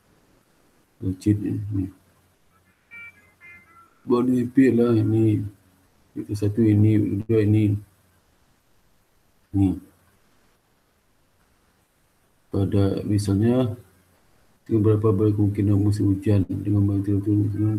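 A young man speaks calmly through an online call, in bursts with pauses.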